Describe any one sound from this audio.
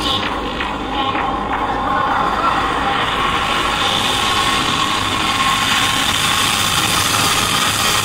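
A band plays loud music on stage in a large hall.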